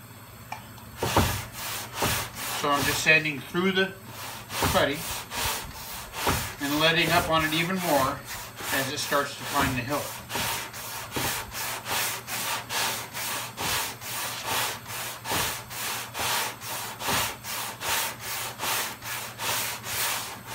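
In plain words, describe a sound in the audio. Sandpaper rubs back and forth on a car door in a quick, steady rhythm.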